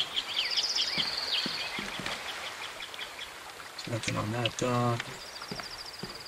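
Water laps gently against a pier.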